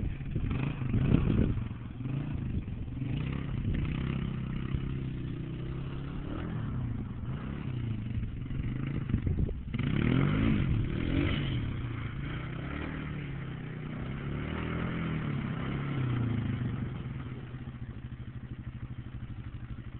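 An ATV engine buzzes far off and comes back closer.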